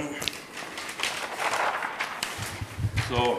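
Large paper sheets rustle and crinkle.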